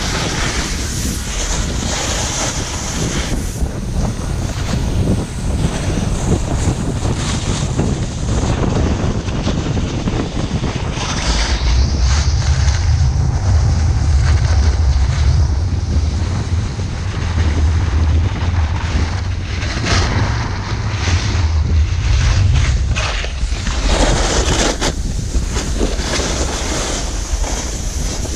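Skis and a snowboard scrape and hiss over packed snow.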